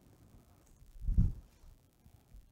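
A microphone picks up a dull thump.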